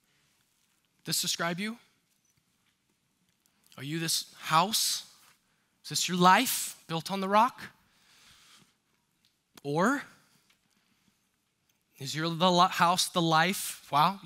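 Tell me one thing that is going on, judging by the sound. A man speaks calmly through a headset microphone in short phrases with pauses.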